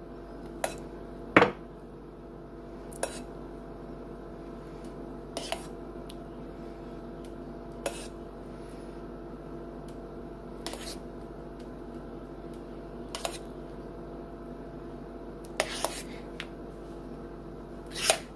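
A spoon clinks against a bowl now and then.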